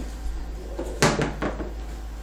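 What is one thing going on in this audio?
A wooden bow clatters onto a hard wooden floor.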